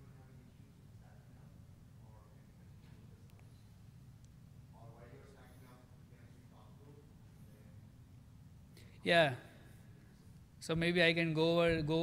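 A man speaks through a microphone in a large hall, quietly at first and then loudly.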